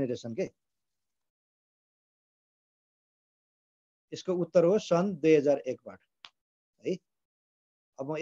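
A man speaks calmly close to a phone microphone, in short bursts with pauses.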